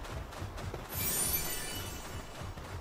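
A bright magical shimmer rings out.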